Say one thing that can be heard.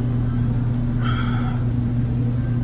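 A young man makes a short surprised exclamation.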